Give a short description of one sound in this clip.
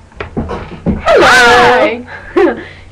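A young woman squeals in a high, sliding voice.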